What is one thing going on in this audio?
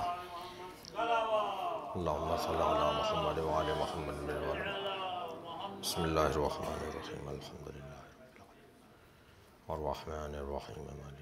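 A man recites in a melodic, chanting voice through a microphone.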